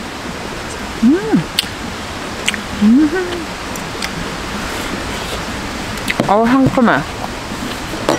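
A young woman close by hums and murmurs with delight while eating.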